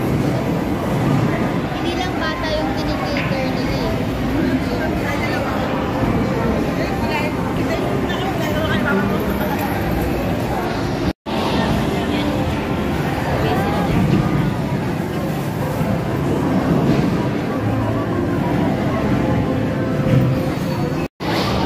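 Arcade machines play electronic jingles and beeps.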